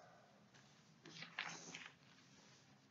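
Paper rustles under a hand.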